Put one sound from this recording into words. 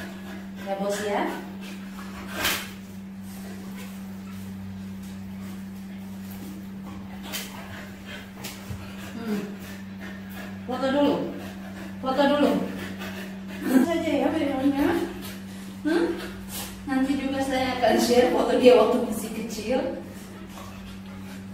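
A towel rubs over a wet dog's coat.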